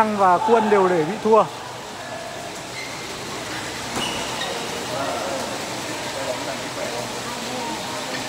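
A racket strikes a shuttlecock with a light pop.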